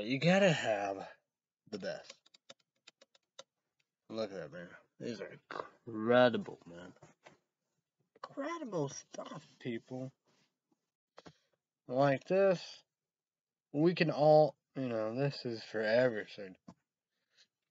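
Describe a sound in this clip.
A young man talks casually and close up, in short bursts with pauses.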